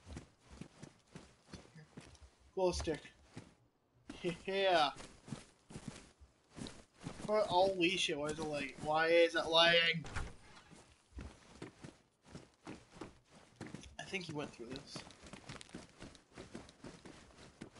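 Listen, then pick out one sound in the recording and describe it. Footsteps patter quickly over grass and hard ground.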